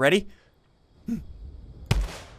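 A young man exclaims in surprise close to a microphone.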